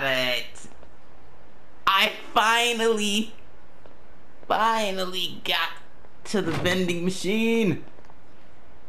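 A man speaks in short, gruff phrases close by.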